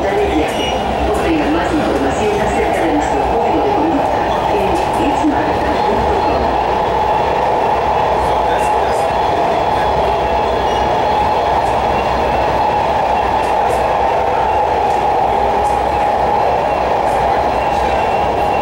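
A train car rumbles and hums steadily as it rolls along the track.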